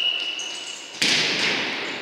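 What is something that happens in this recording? A ball thuds as it is kicked.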